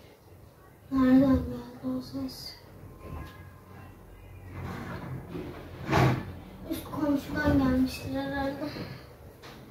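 A young girl talks nearby.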